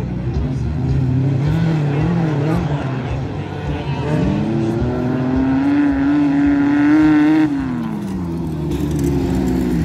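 A racing engine revs loudly, rising in pitch and then dropping away.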